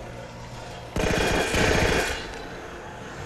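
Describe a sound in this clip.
An energy blast crackles and bursts.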